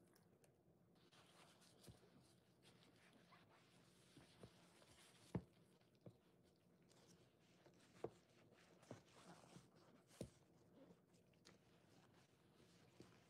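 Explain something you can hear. A gloved hand squeezes wet sponges with soft squelching and crackling.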